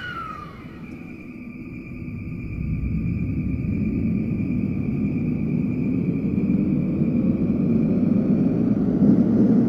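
Train wheels rumble on the rails, growing louder.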